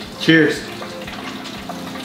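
A man crunches on fried food.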